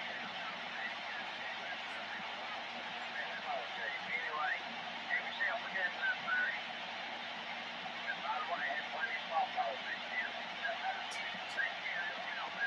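A radio hisses with steady static through its loudspeaker.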